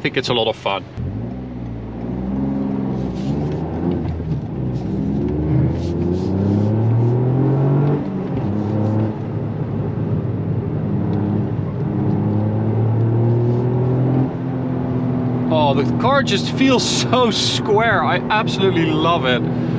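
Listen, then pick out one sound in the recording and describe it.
A car engine revs hard and climbs through the gears as the car speeds up.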